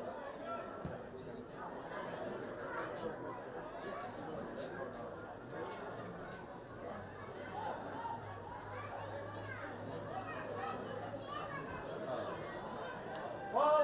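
A small crowd murmurs and calls out in the stands.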